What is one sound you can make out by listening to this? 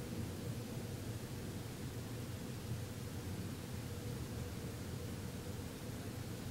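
A man hums a low, steady drone close by.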